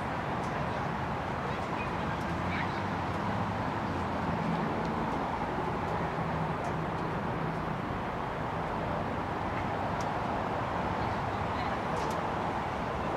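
A crowd of people chatters outdoors at a distance.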